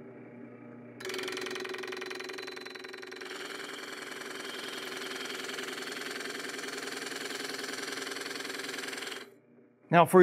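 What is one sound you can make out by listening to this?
A drill press motor hums steadily.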